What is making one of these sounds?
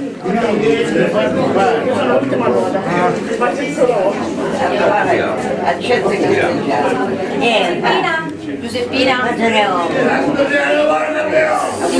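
Several people chatter in the background of a busy room.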